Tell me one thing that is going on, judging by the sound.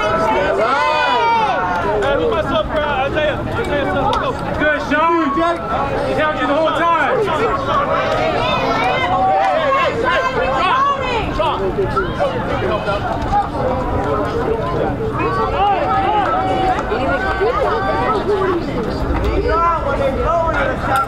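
Young boys and men talk and call out all around, outdoors.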